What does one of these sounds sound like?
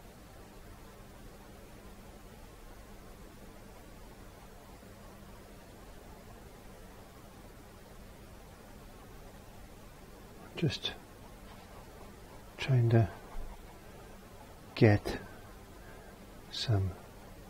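A paintbrush softly brushes across a canvas.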